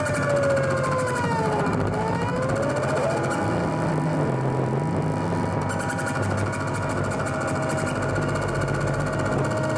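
Electronic synthesizer tones drone and glide up and down in pitch.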